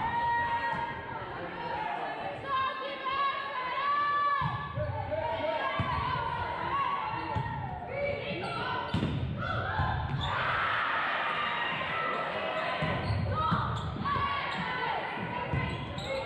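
Young women call out to each other in a large echoing gym.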